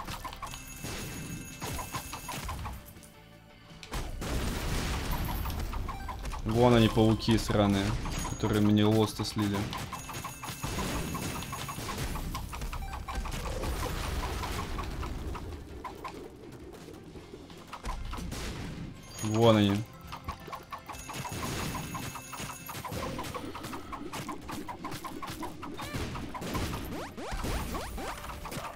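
Game sound effects of shots and explosions play.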